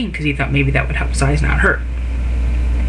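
A middle-aged woman speaks calmly and close, through a low-quality microphone.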